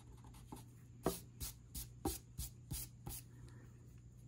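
A hand brushes across paper.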